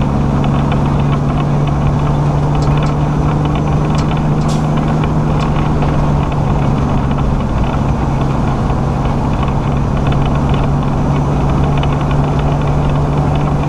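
A vehicle engine drones steadily while driving.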